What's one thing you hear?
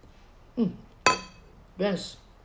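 Chopsticks clink against a porcelain bowl with a short ringing tone.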